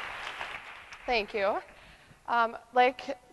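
A woman speaks to an audience in a large hall.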